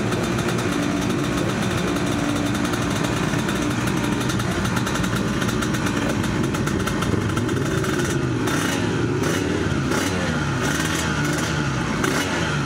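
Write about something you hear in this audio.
A motorcycle engine idles loudly close by.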